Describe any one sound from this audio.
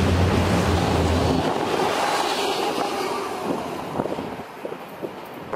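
Freight cars rattle and clatter past on the rails close by.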